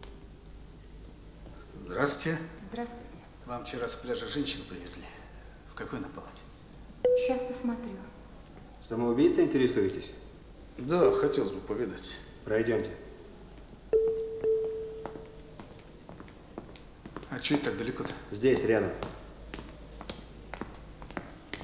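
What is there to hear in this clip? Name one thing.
Footsteps sound on a hard floor.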